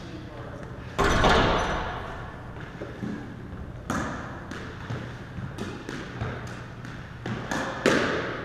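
Footsteps echo across a wooden floor in a hard, echoing room.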